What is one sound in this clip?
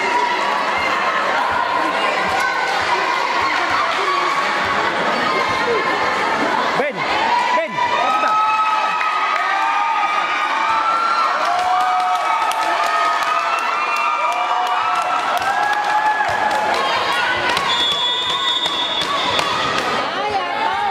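Young women players call out to each other.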